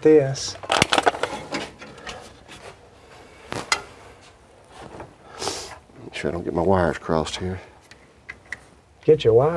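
Metal tools clink and knock.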